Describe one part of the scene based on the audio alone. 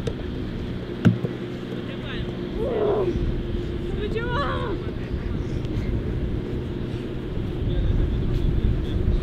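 A football is kicked with a dull thump.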